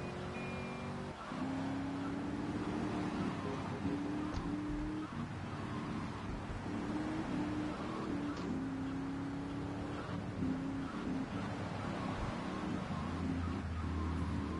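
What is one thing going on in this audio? A sports car engine roars steadily at speed.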